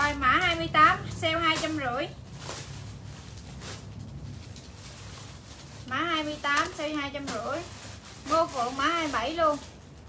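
Fabric rustles as a scarf is shaken out.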